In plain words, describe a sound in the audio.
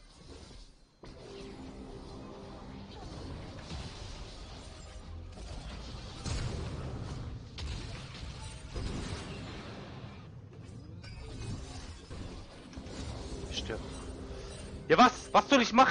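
Magic blasts and clashing weapons crackle and boom in a hectic fight.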